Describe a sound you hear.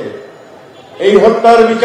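An elderly man speaks forcefully through a microphone and loudspeakers.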